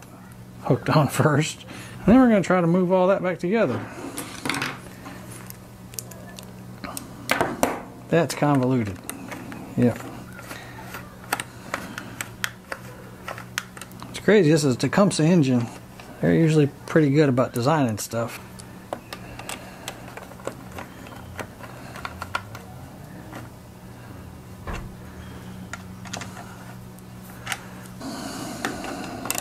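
Small plastic and metal parts click and rattle as they are handled close by.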